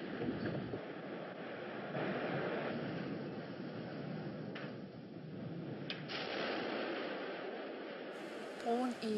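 Masonry collapses with a deep, roaring rumble.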